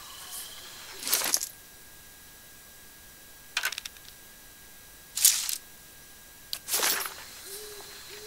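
Short whooshing menu sounds play as game panels open and close.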